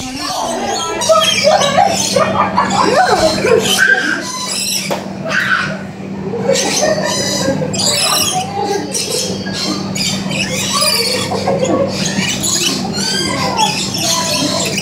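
Parrots screech loudly close by.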